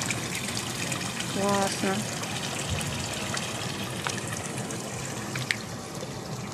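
Water splashes steadily from a fountain into a pool.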